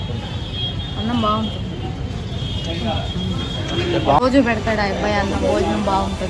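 A middle-aged woman speaks close by with animation.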